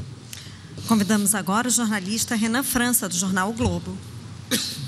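A man speaks calmly into a microphone over loudspeakers.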